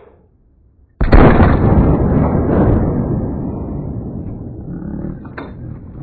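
A rifle fires a single loud shot that booms and rolls away into the distance.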